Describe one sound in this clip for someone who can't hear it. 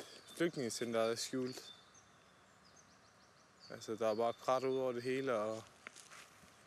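A young man speaks calmly close by, outdoors.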